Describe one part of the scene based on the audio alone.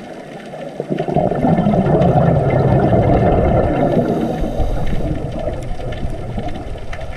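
Bubbles from a diver's breathing gurgle and rumble underwater.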